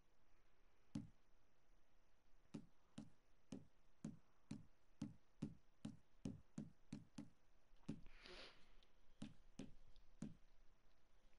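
A menu cursor ticks with short clicks as it moves from item to item.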